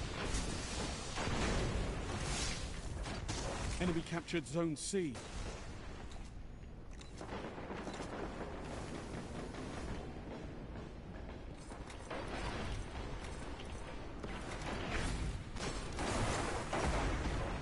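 Footsteps run quickly over hard floors.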